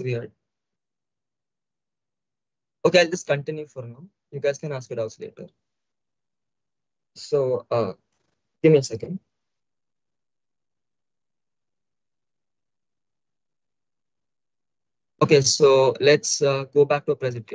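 A young man talks through a microphone, in short bursts with pauses.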